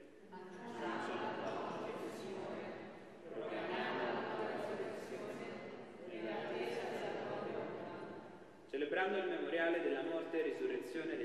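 A man chants slowly through a microphone in a large echoing hall.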